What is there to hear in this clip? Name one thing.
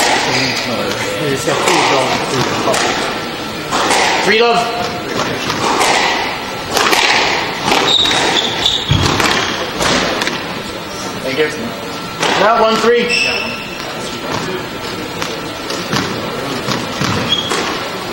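A squash ball smacks against the walls and racquets in an echoing court.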